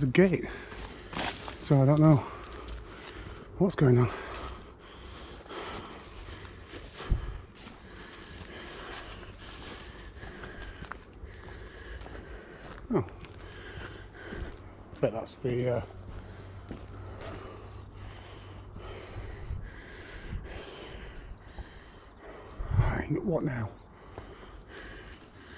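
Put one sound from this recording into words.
Footsteps crunch along a dirt path.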